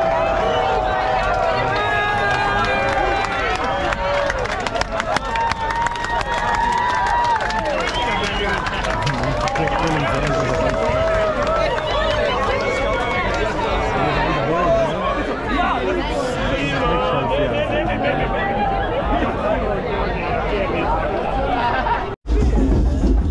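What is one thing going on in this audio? A large crowd of young men and women talks and shouts excitedly outdoors.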